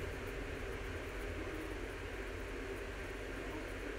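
A marker squeaks faintly across a board.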